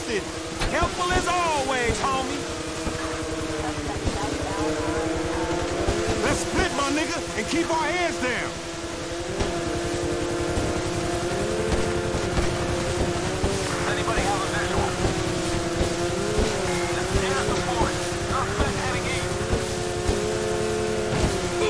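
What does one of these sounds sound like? Water hisses and splashes under a speeding jet ski's hull.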